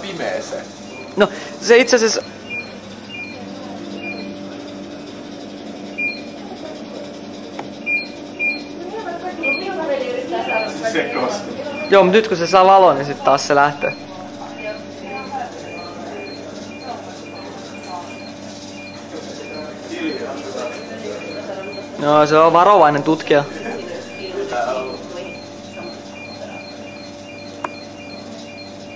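A small robot's motors whir steadily as it rolls across a hard floor.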